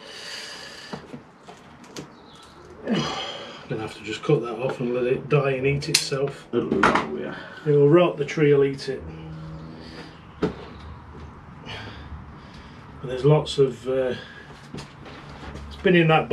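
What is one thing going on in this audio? Soil rustles as hands press it into a pot.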